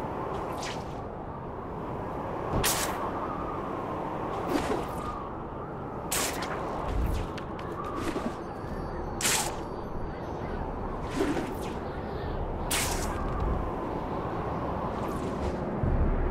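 Web lines shoot out with sharp whooshing snaps, again and again.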